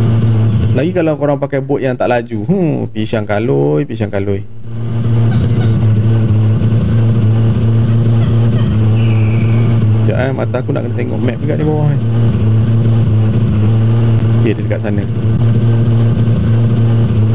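A boat's motor drones steadily at high speed.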